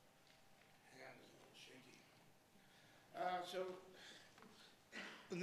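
An elderly man speaks calmly.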